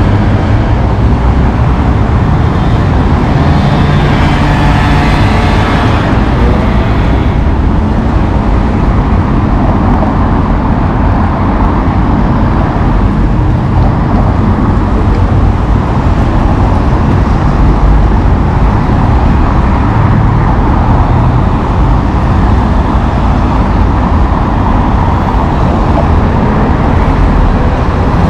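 Strong wind rumbles across the microphone outdoors.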